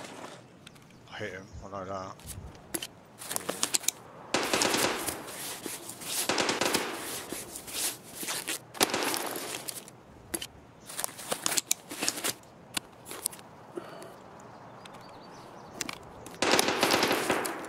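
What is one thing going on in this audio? Menu items click softly as gear is moved around.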